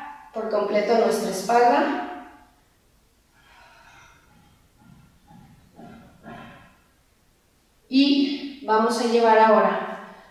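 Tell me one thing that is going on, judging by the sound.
A woman speaks calmly and clearly through a microphone.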